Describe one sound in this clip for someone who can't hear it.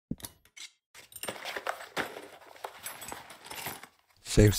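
A game character crafts an item with rustling, scraping sounds.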